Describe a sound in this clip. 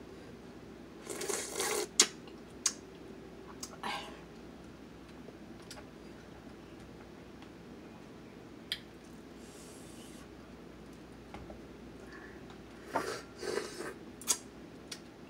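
A young woman chews and slurps loudly near a microphone.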